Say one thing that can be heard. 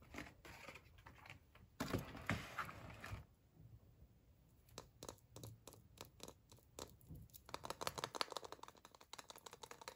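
A foil-wrapped egg crinkles in a hand.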